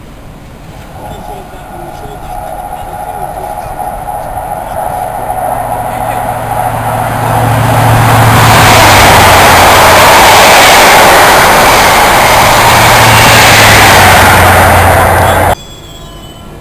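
A diesel train approaches with a rising engine roar and rumbles past.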